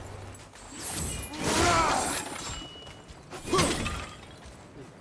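A wooden barrier smashes and splinters.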